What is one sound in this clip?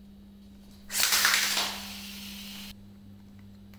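A plastic launcher ratchets loudly as it is wound.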